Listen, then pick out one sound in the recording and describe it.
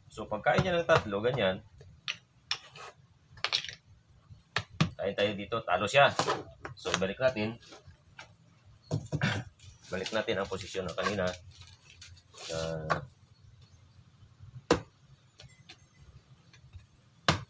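Plastic game pieces tap and slide on a table.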